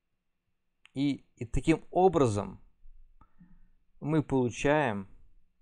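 A young man speaks calmly and close to a microphone, with pauses.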